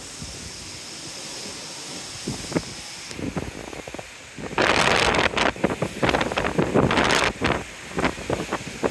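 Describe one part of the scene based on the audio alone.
Seawater churns and rushes in a ship's wake far below.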